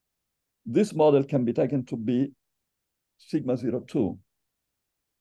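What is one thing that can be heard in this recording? An older man speaks calmly through a microphone, as if in an online call.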